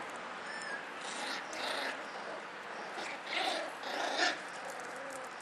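Puppies yelp and whimper as they play.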